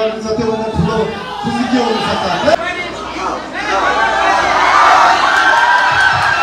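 A crowd shouts and cheers loudly close by.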